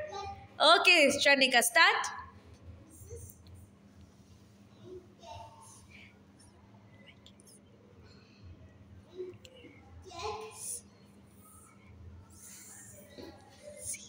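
A young child speaks in a high, sing-song voice close by.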